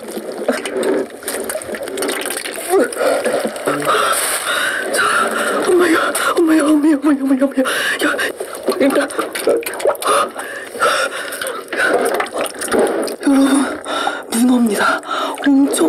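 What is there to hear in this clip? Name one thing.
A wet octopus squelches and slaps against a glass dish.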